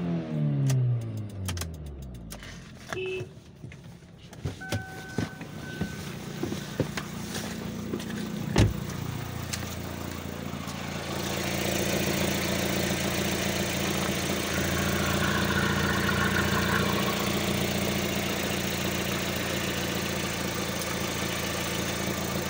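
A car engine idles with a steady low hum, growing louder toward the end.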